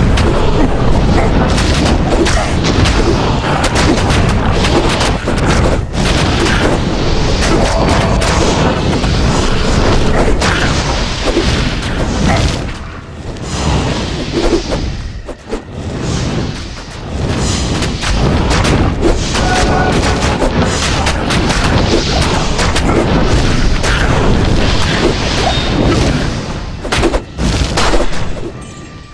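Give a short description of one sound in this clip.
Spells crackle and burst in a fierce game battle.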